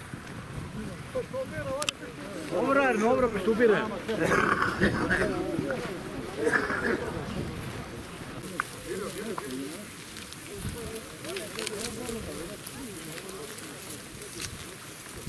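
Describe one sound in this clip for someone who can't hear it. Men in a crowd chant and call out loudly together outdoors.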